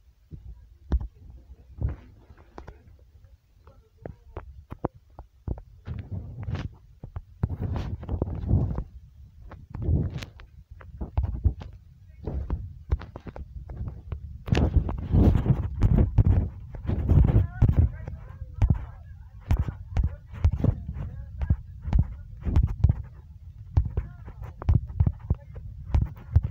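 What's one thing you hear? Wooden blocks are placed with soft, dull knocks.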